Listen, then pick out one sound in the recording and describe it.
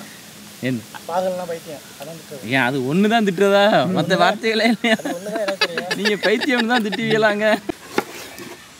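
Men laugh close by.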